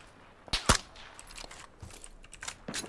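Footsteps run over rough ground.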